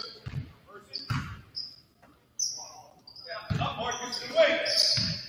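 A basketball bounces with dull thuds.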